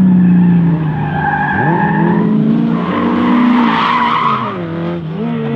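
Tyres squeal on tarmac.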